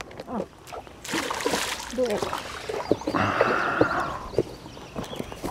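A fish splashes and thrashes at the surface of the water.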